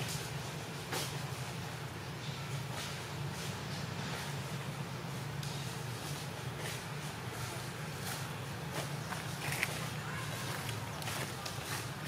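A macaque chews food.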